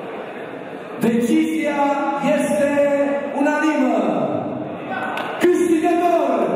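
A middle-aged man announces loudly through a microphone and loudspeakers.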